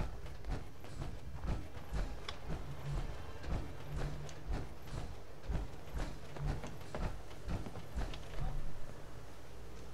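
Footsteps crunch steadily on concrete and gravel.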